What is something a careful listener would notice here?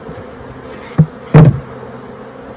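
A hive lid thumps as it is lifted off.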